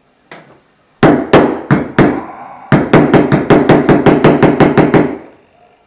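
A mallet taps sharply on a metal stamping tool, in quick repeated blows.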